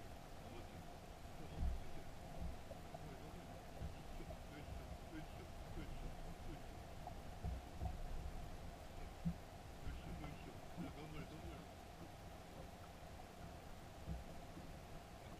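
Water laps against a boat's hull.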